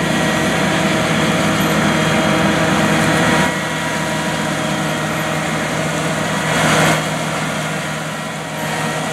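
Tracks and a planter clatter over dry stubble.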